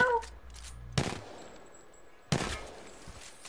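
Gunshots crack sharply a few times.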